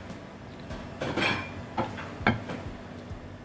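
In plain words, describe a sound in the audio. Plates clink against each other on a table.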